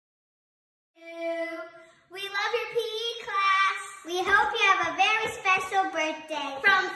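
Two young girls sing together over an online call.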